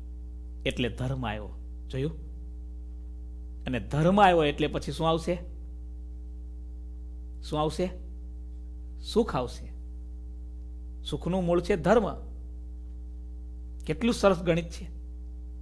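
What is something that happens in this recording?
A man speaks calmly and slowly into a close microphone, pausing often.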